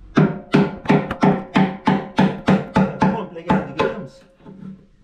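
A tool taps rapidly and repeatedly on metal.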